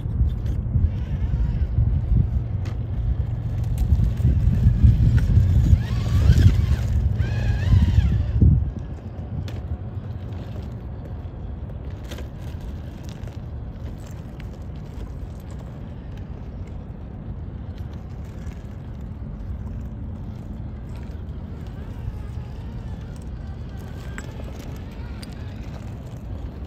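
Plastic tyres crunch and scrape over loose gravel and rocks.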